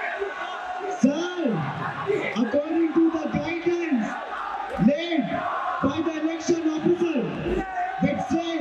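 A young man speaks steadily through a microphone in a large echoing hall.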